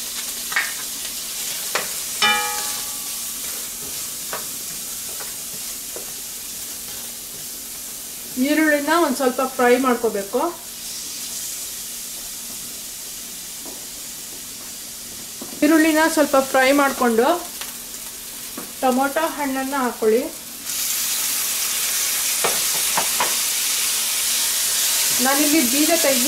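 Chopped onions sizzle in a hot steel pan.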